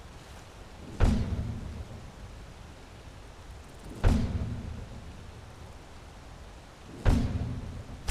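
A bowstring twangs sharply as arrows are shot, again and again.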